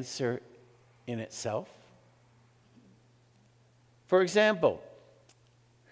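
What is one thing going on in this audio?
An elderly man speaks calmly and with pauses into a microphone in an echoing room.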